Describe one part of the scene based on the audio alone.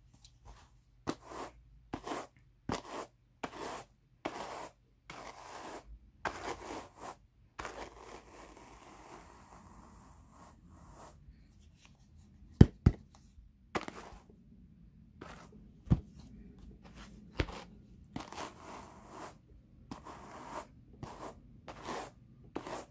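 A wire-toothed carder scratches and brushes through wool in repeated strokes.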